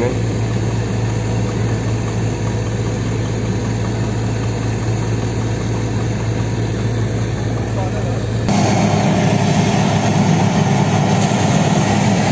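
A drilling rig's engine drones loudly and steadily.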